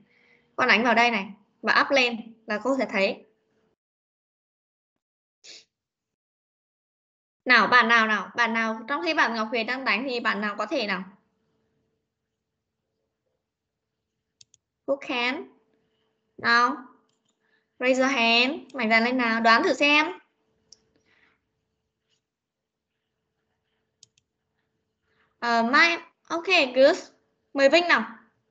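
A young woman speaks calmly and clearly over an online call.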